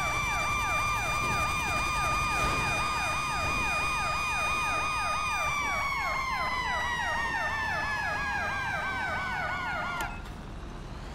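A fire engine siren wails rapidly up and down.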